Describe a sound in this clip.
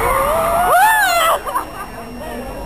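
A young woman squeals excitedly close by.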